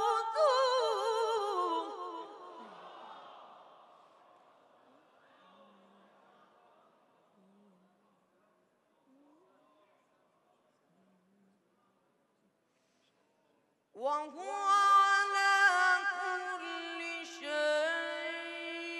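A boy chants in a high, melodic voice through a microphone, in a reverberant space.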